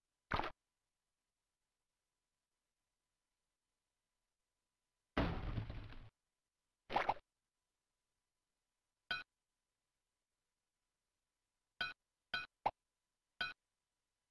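Short electronic game sound effects chime and blip now and then, with silence between them.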